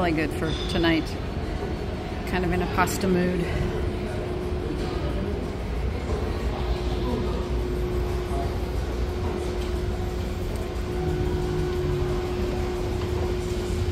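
An escalator hums and rumbles steadily as it moves.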